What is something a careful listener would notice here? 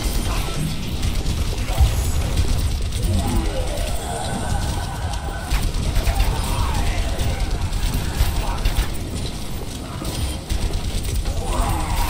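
Explosions boom repeatedly.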